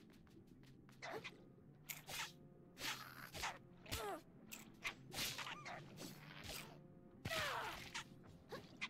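Sharp swooshing strikes and impacts of a scuffle burst out again and again.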